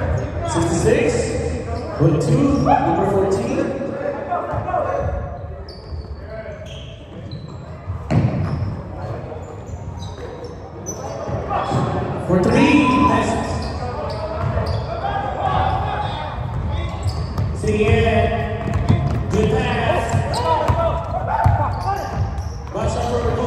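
Voices of men and spectators chatter and call out in a large echoing hall.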